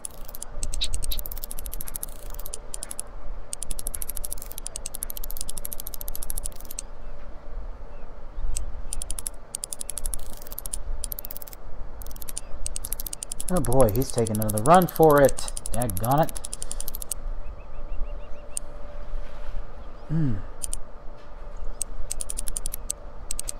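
A fishing reel ratchets with rapid clicking as line is wound in.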